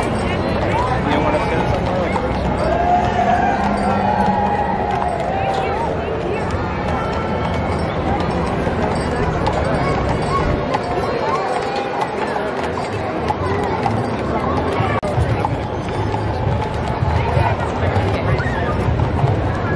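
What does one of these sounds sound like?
Horses' hooves clop on pavement.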